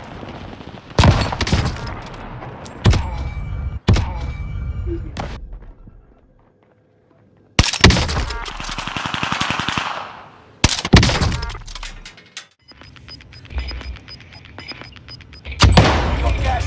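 A rifle fires loud, sharp single shots that echo briefly.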